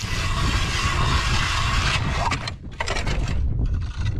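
An ice auger grinds into ice.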